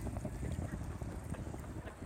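Waves ripple and lap on open water.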